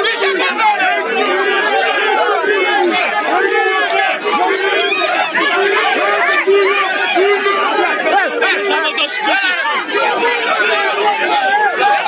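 A large crowd of men and women shouts and yells close by, outdoors.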